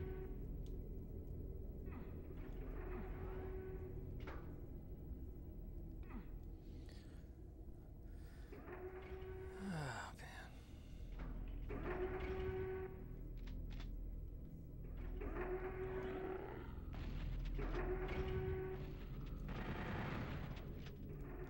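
Game gunshots blast and echo.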